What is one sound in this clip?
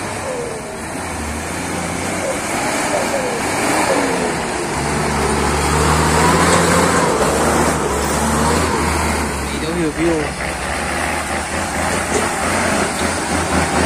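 Truck tyres squelch and splash through mud.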